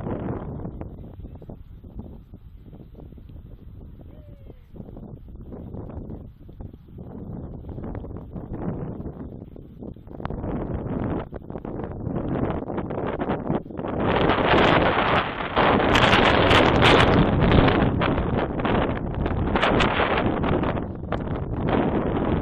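Wind gusts against the microphone outdoors, growing stronger.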